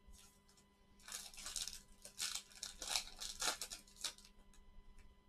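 A foil card wrapper crinkles and tears.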